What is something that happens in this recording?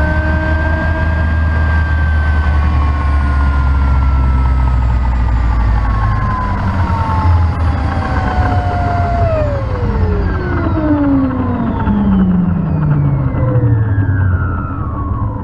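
A helicopter's turbine engine whines loudly and slowly winds down, falling in pitch.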